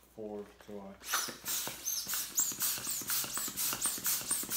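A hand pump puffs air in quick, rhythmic strokes.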